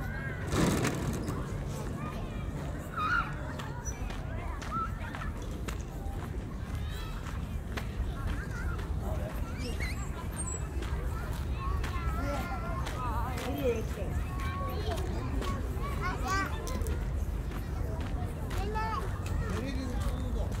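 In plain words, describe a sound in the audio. Children call out and chatter at a distance.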